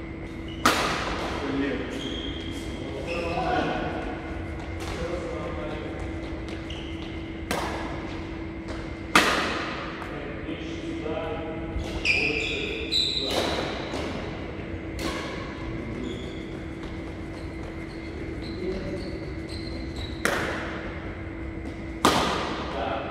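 Rackets strike a shuttlecock with sharp smacks that ring through a large echoing hall.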